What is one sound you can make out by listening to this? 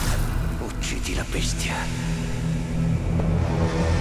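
A man speaks slowly in a low, menacing voice close by.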